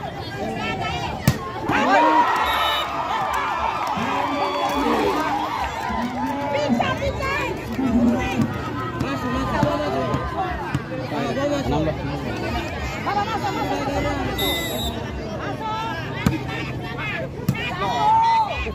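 A large outdoor crowd cheers and chatters loudly.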